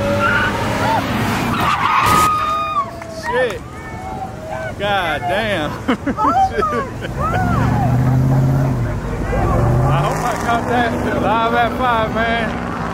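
Car engines hum as traffic drives past on a street.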